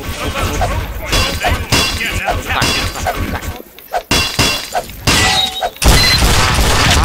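A wrench clangs repeatedly against metal in quick, steady strikes.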